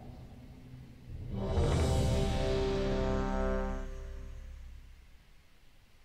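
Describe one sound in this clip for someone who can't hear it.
A deep magical whoosh swells and rings out.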